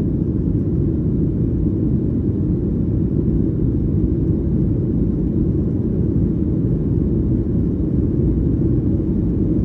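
Jet engines and rushing air make a steady low roar.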